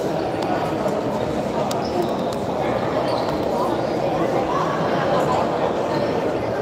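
Footsteps run across a hard floor in a large echoing hall.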